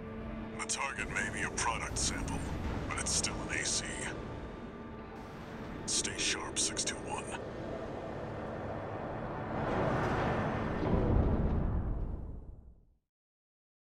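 Heavy machinery rumbles deeply and swells louder before cutting off.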